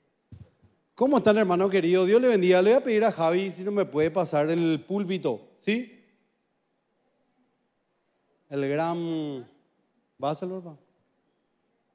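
A man speaks through a microphone over loudspeakers in a large hall.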